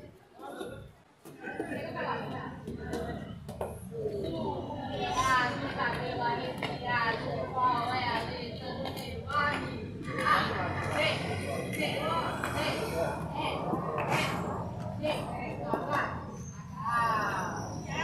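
Game pieces click on a plastic board.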